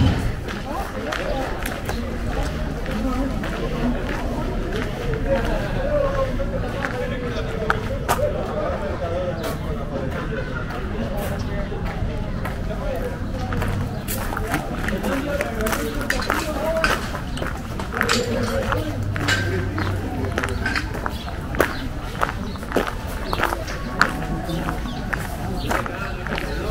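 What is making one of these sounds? Women and men chatter nearby outdoors.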